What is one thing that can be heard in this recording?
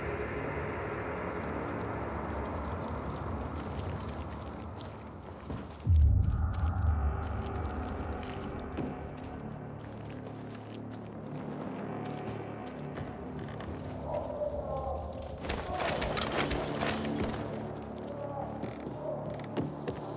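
Footsteps crunch over grass and wooden boards.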